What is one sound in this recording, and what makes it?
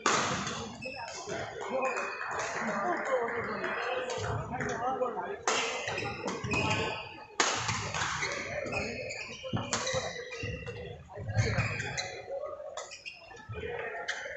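Badminton rackets strike a shuttlecock in a rally.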